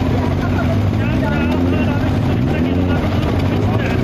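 A motorcycle engine revs up and down.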